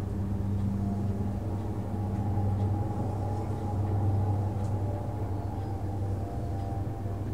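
A jet engine roars steadily with a deep, low drone.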